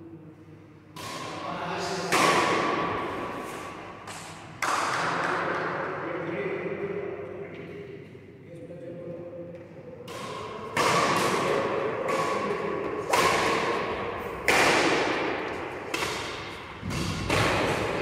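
A shuttlecock is hit hard with a racket again and again, echoing in a large hall.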